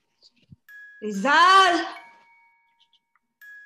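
A woman sings through an online call.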